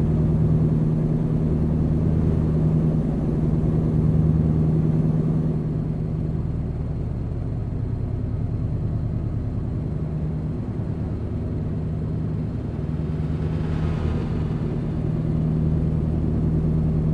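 A truck engine hums with a steady low drone.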